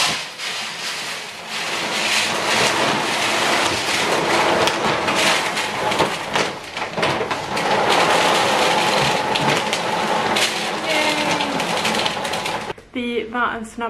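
Cat litter pours into a tray with a steady hiss.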